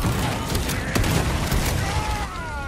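A barrel explodes with a roar of flames.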